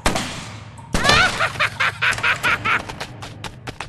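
An explosion bursts with scattering debris.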